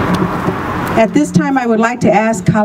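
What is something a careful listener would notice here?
A middle-aged woman speaks into a microphone, heard through loudspeakers outdoors.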